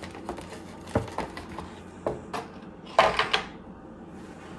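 Stiff plastic packaging crinkles and clicks as it is handled.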